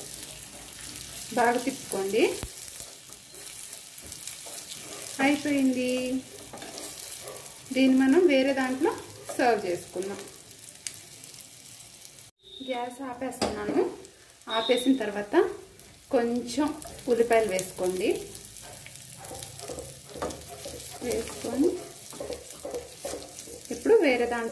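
A metal spoon scrapes and clinks against a pan while stirring.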